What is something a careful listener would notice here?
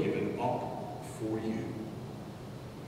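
A man speaks calmly into a microphone, with a slight echo.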